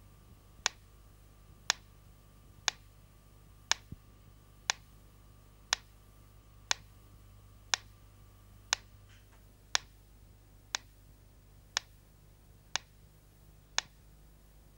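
A mechanical pyramid metronome ticks about once a second.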